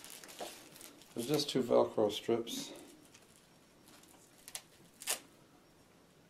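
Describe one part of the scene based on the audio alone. Small plastic parts click as a man handles them.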